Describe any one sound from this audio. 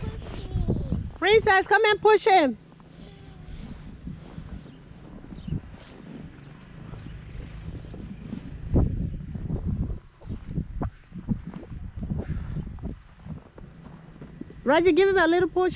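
A plastic sled scrapes and hisses over snow.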